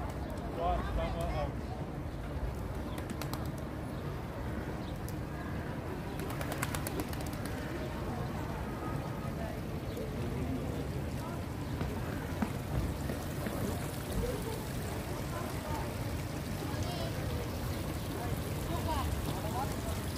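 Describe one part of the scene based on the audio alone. A small fountain jet splashes into a pool outdoors.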